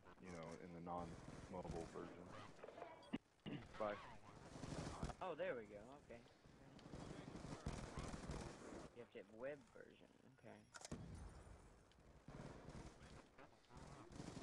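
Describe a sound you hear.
Gunshots crack in short bursts.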